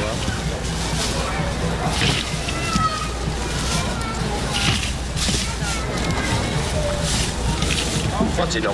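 Plastic bags rustle and crinkle close by.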